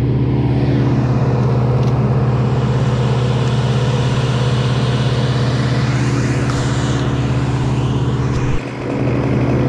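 A wood chipper engine hums steadily.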